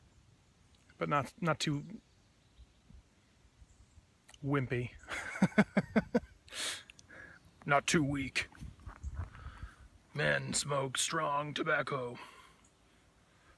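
A young man talks calmly and close by, in short bursts with pauses.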